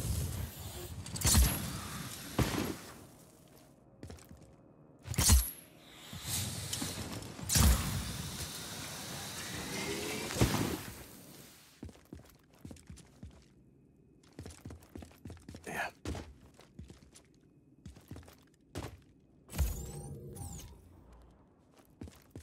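Footsteps scuff slowly across a hard floor.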